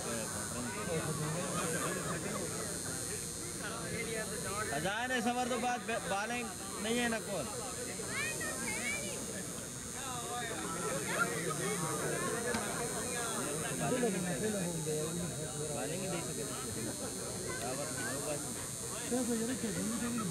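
Several men talk and call out nearby outdoors.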